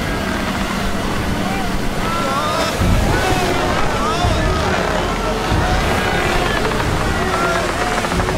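Heavy waves crash and roar.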